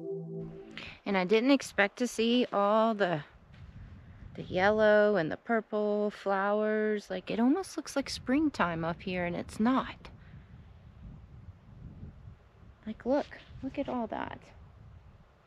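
A young woman talks close by, with animation, outdoors.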